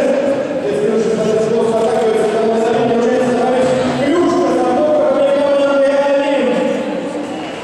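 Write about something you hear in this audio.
A large crowd sings together in a big echoing arena.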